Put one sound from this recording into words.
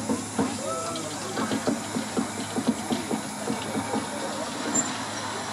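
Train wheels clack rhythmically over the rail joints.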